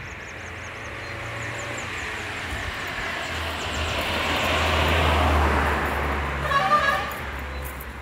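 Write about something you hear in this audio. A car drives past on the road, swelling and then fading.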